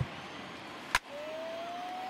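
A wooden bat cracks against a baseball.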